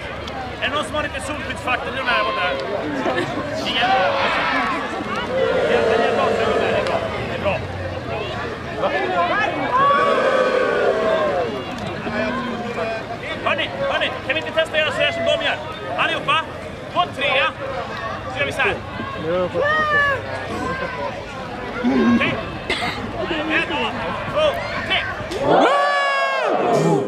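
A crowd of onlookers chatters nearby.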